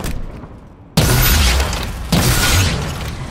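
A rocket launcher fires with a loud boom.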